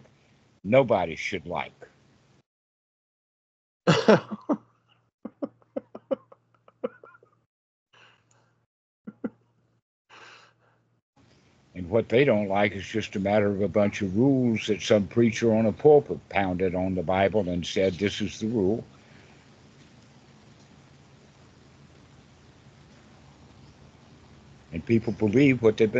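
An elderly man talks with animation over an online call.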